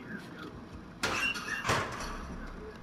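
A metal locker door bangs open and shut.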